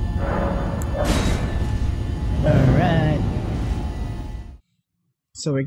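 A low magical rumble and whoosh swells.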